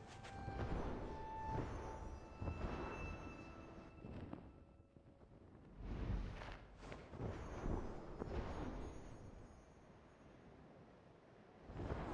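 Airy whooshing swells and fades as a small figure glides through the air.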